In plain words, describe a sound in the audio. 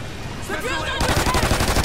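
Pistols fire in a rapid burst.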